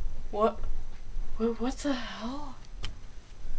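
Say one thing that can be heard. A teenage boy speaks in short bursts close to the microphone.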